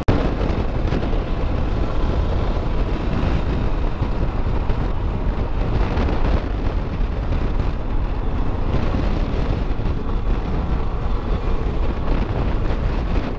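A motorcycle engine hums steadily while riding along a road.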